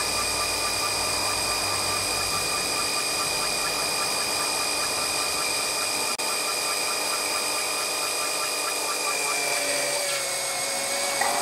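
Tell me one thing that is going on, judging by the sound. A small engine hums steadily close by.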